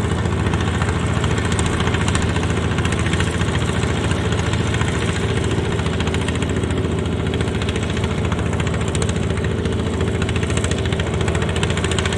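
A small diesel engine chugs loudly and steadily close by.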